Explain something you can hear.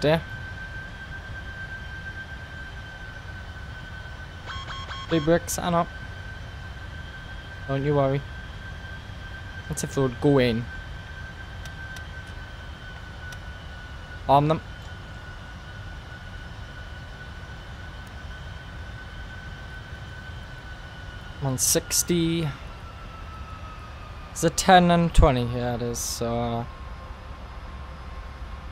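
A jet engine drones steadily in flight.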